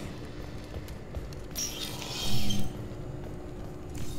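Footsteps thud on a hard metal floor.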